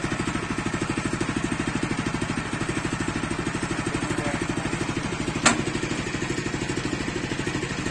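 A small petrol engine idles with a steady, rapid chugging close by.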